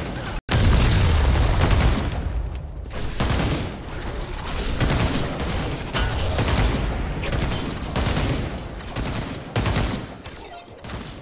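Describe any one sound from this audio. Energy weapons fire and blast in rapid bursts.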